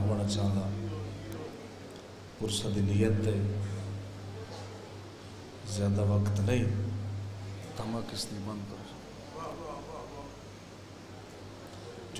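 A man recites in a loud, sustained, chanting voice through a microphone and loudspeakers, in a reverberant room.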